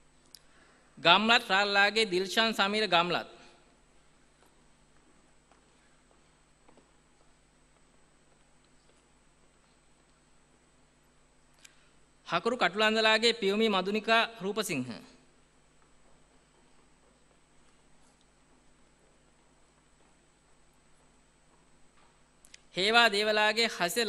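A man reads out names through a loudspeaker in a large hall.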